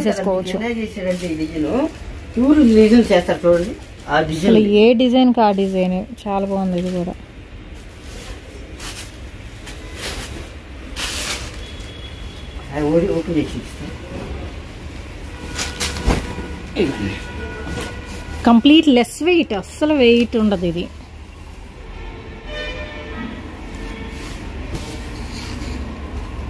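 Fabric rustles and swishes as it is unfolded.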